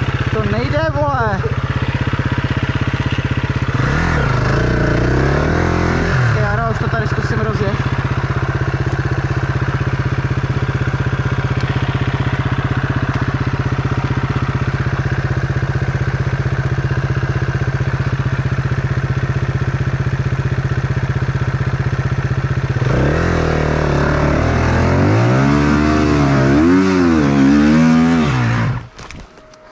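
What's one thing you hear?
A dirt bike engine idles steadily close by.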